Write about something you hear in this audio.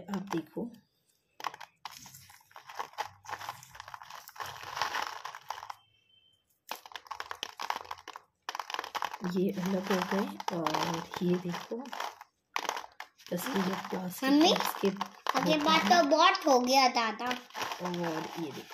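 Crisp pea pods snap and tear as fingers peel them.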